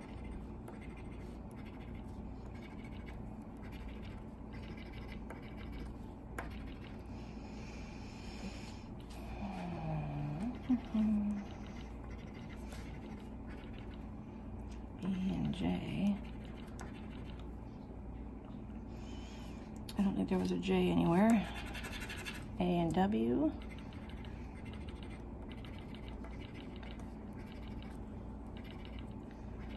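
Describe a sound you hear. A coin scratches across a paper card with a soft rasping sound.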